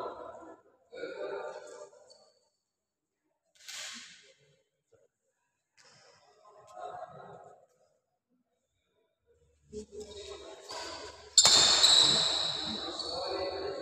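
Badminton rackets strike a shuttlecock in an echoing indoor hall.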